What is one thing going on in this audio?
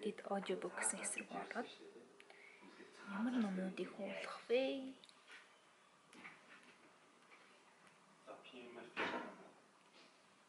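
A young woman talks calmly and casually into a nearby microphone.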